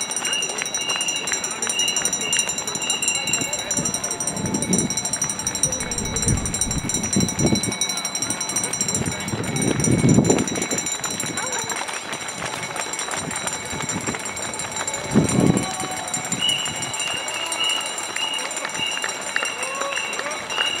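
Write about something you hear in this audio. Many runners' footsteps patter on the road.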